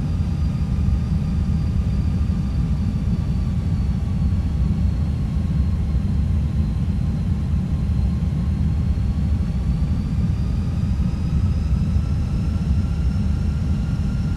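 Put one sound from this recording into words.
Air rumbles low and steady around an aircraft cabin.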